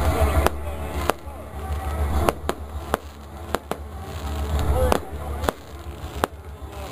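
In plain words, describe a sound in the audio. Fireworks bang and crackle loudly overhead.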